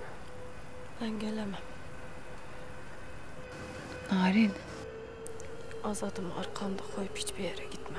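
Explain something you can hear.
A young woman speaks quietly and tearfully, close by.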